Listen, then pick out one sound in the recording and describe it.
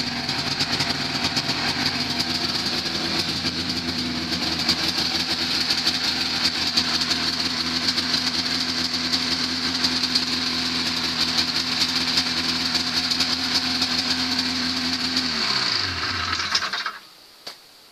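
A small engine runs loudly with a rattling clatter, then winds down and stops.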